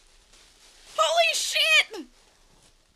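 A young woman laughs and squeals.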